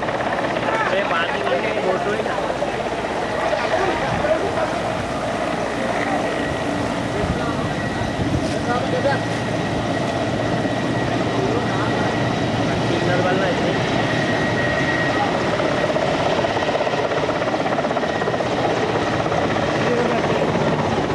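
Waves break and rush with a steady roar.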